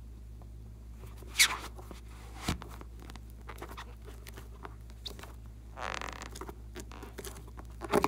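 A rubber balloon squeaks under fingers.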